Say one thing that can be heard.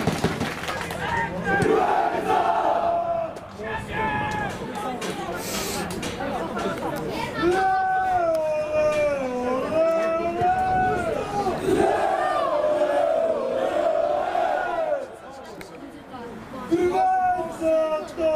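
Men shout to one another across an open outdoor pitch.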